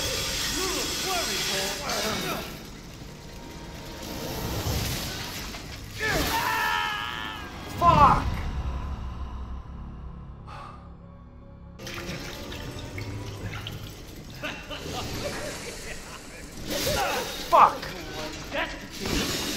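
A man's voice growls and shouts through game sound.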